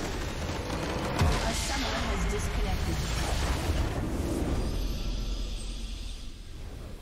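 A game's base crystal explodes with a loud crumbling blast.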